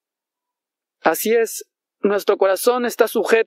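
A young man speaks clearly into a nearby microphone.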